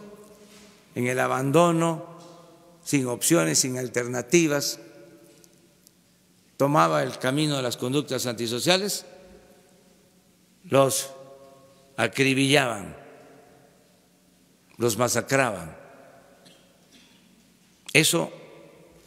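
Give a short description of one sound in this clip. An elderly man speaks calmly into a microphone in a room with a slight echo, pausing between phrases.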